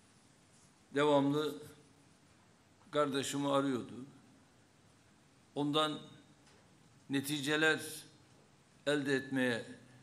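An older man speaks calmly into a microphone with pauses.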